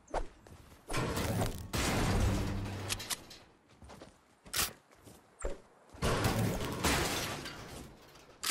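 A pickaxe strikes wood and metal with sharp thuds.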